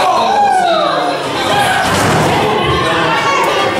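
Wrestlers' bodies thud onto the ring mat.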